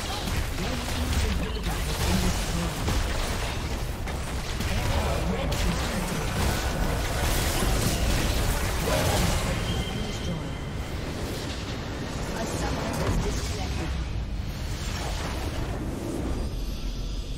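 Video game spell effects crackle and blast in a chaotic battle.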